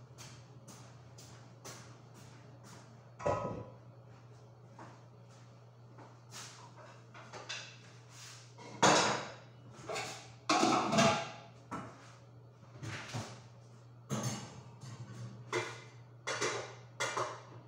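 A metal pan clatters and scrapes on a stove.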